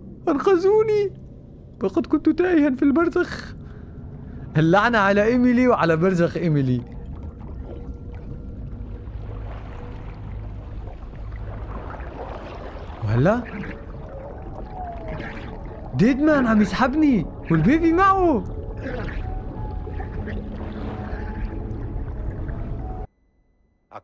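Water rumbles and swirls deep and muffled.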